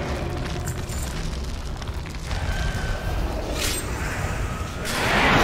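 Spell and combat effects whoosh and crackle.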